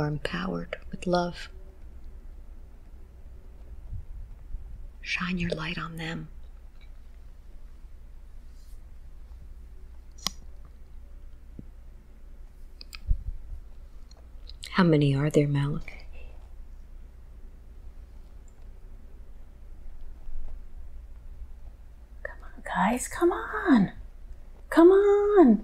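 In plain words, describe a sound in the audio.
A woman moans and groans in discomfort close by.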